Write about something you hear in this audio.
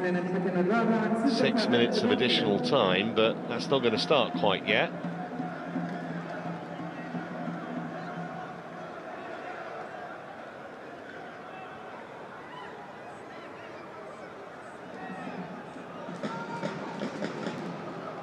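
A stadium crowd murmurs and cheers outdoors.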